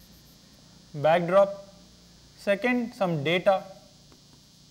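A man speaks clearly and calmly in short phrases, heard through a microphone.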